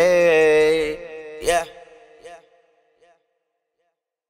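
A young man sings a drawn-out note that echoes away.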